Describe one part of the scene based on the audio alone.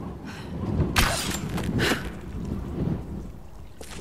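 An arrow is loosed with a sharp snap.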